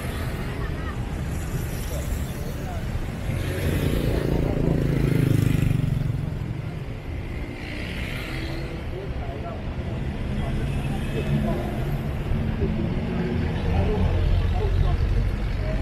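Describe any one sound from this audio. Motor scooters buzz past.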